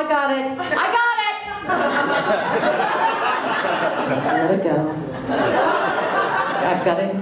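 A middle-aged woman speaks with animation through a microphone.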